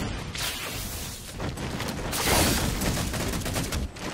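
An energy sword slashes with a sharp whoosh.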